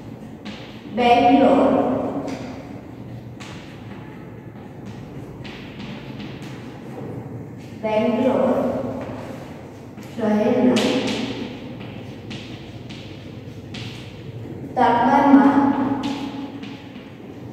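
A woman speaks loudly in short bursts, close by.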